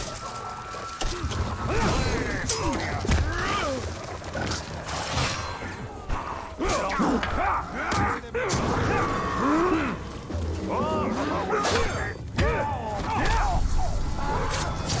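Blades clash and strike flesh in quick, heavy blows.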